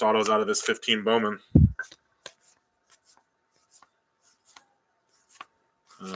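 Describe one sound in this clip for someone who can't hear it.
Stiff trading cards flick and slide against each other.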